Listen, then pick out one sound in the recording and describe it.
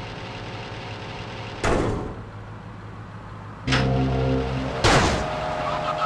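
A metal roller door clatters shut and then rattles open again.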